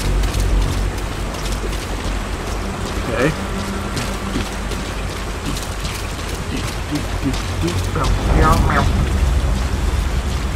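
Footsteps run over soft ground.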